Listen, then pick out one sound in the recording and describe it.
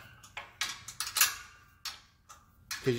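Metal parts click and clink as a latch is handled.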